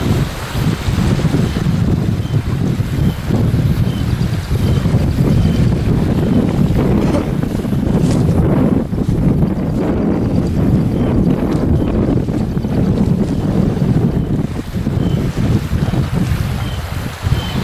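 Wind blows hard into the microphone outdoors.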